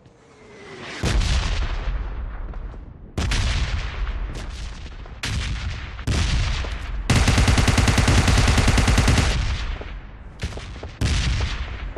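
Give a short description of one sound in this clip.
A rifle fires loud, rapid shots.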